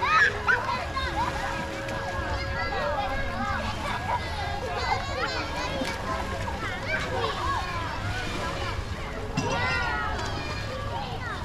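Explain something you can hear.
Children shout and chatter nearby.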